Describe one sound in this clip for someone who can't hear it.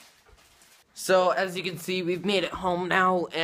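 A teenage boy talks close to the microphone.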